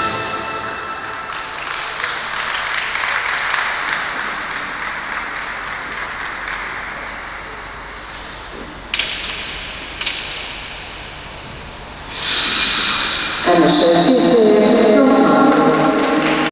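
Ice skate blades scrape and hiss across the ice.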